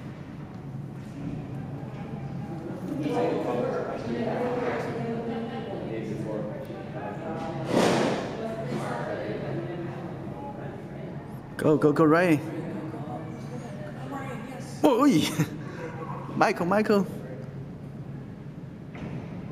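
A crowd of people chatters in a large echoing rink.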